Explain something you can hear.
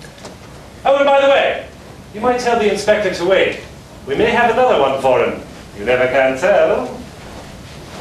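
A woman speaks with feeling in a room with a slight echo.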